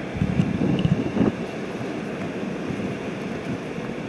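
A hand sets a shoe down on rock with a soft scuff.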